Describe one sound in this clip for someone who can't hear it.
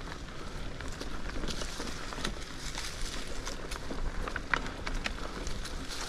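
Bicycle tyres roll and crunch over dry leaves and dirt.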